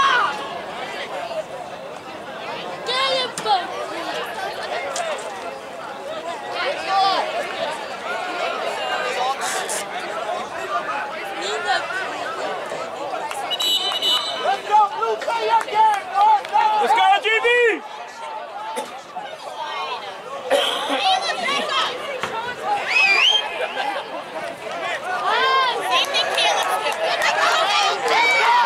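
Players shout across an open field.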